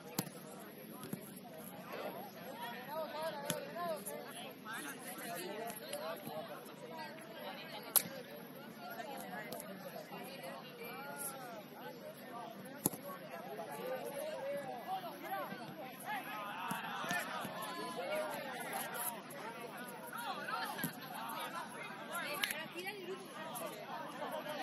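Young women chatter and call out across an open field.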